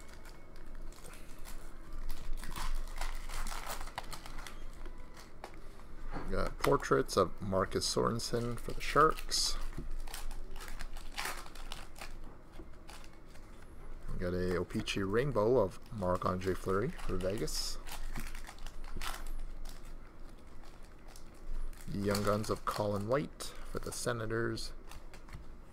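Trading cards rustle and flick as they are shuffled.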